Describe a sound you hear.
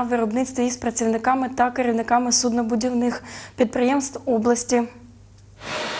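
A young woman speaks clearly and evenly into a microphone.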